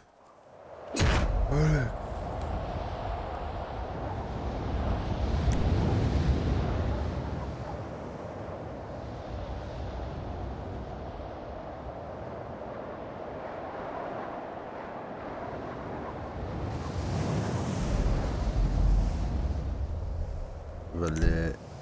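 Wind rushes loudly and steadily.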